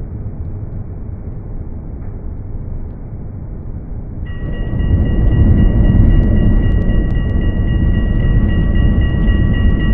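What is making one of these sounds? A tram rumbles along the rails and grows louder as it speeds up.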